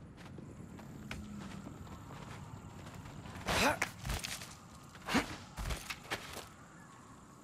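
Hands scrape and grip on rock while climbing.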